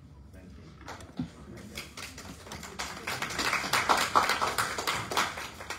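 A small crowd claps steadily, growing louder.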